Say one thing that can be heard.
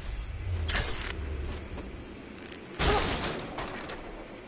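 An axe smashes through wooden boards.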